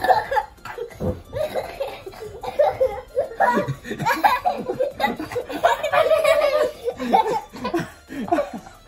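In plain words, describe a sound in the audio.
A young boy laughs and squeals close by.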